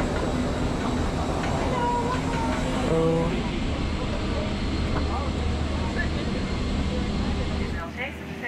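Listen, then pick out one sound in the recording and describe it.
Many people murmur in the background.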